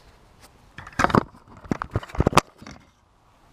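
Metal tools clank against an engine.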